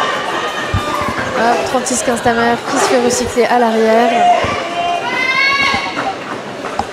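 A crowd of men and women shouts and cheers in a large echoing hall.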